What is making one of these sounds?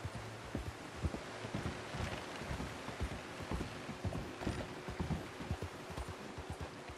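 A horse's hooves knock hollowly on wooden boards.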